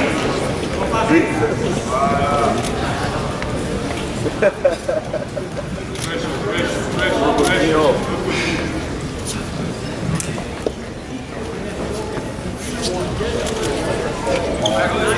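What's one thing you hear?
A crowd of spectators shouts and calls out in a large echoing hall.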